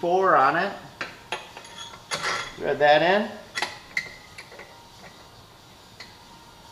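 A metal wrench clicks and clinks against a bolt.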